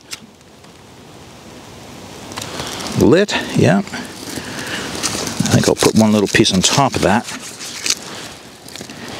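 A small fire burns with a soft, growing rush.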